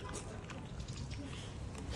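A dog chews and nibbles on a leaf close by.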